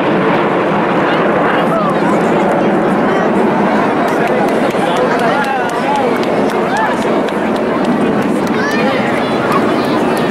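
A crowd cheers and talks nearby.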